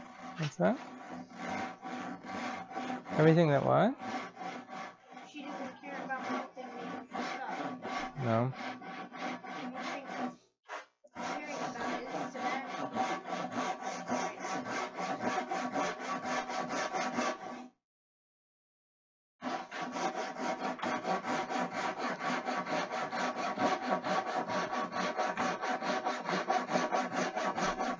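A man sands a long wooden board by hand with quick, rhythmic strokes.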